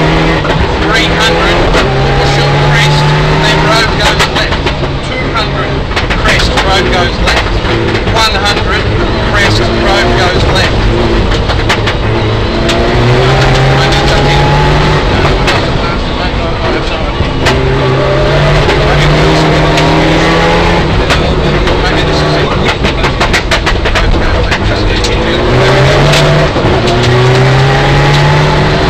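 Gravel clatters and pings against the underside of the car.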